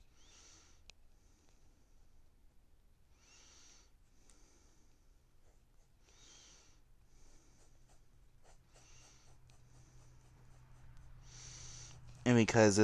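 A marker squeaks and scratches softly across paper.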